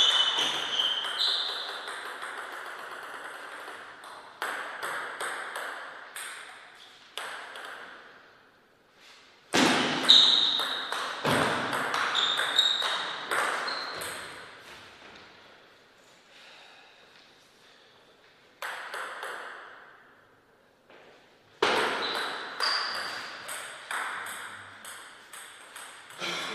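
A table tennis ball clicks sharply back and forth off paddles and the table, echoing in a large hall.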